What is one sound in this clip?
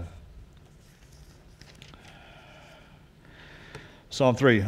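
Pages of a book rustle as a man turns them.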